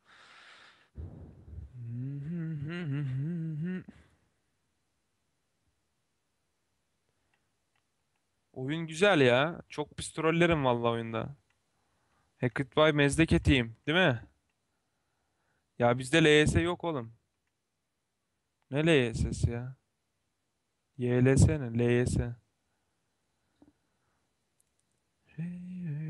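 A young man talks casually into a nearby microphone, in short bursts.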